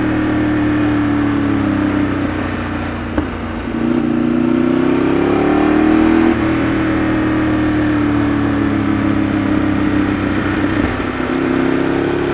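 A Ducati 848 V-twin sport bike cruises along a winding road, its engine rising and falling in pitch with the throttle.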